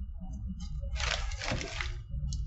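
A paper wrapper crinkles and rustles.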